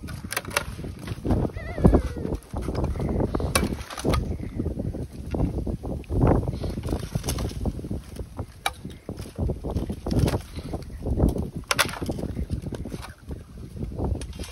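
Water sloshes and splashes.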